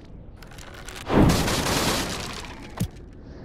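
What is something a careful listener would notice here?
A whooshing game sound effect rushes past.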